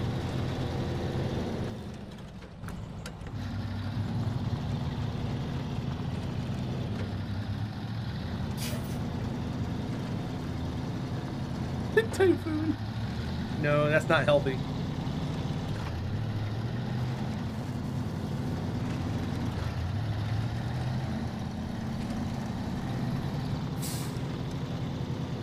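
A truck engine rumbles steadily as it drives.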